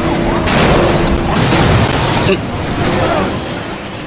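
A car crashes with a loud metallic impact.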